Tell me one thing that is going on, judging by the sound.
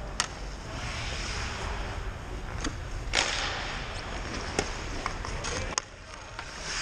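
A hockey stick clacks against a puck on the ice.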